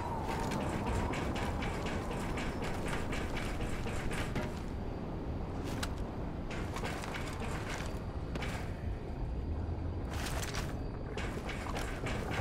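Footsteps clang on a metal walkway.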